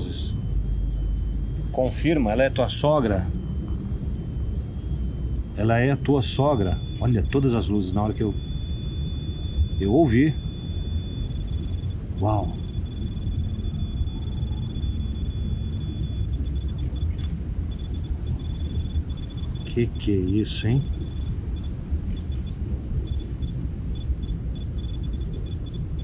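Wind blows through the trees outdoors.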